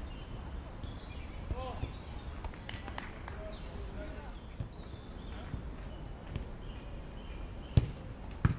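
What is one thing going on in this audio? Young men call out faintly in the distance outdoors.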